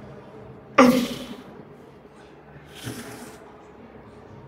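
A man exhales sharply with effort, close by.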